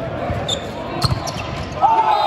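A volleyball is struck hard.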